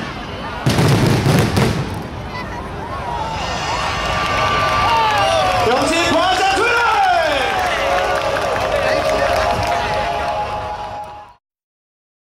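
Fireworks crackle and fizzle as the sparks fall.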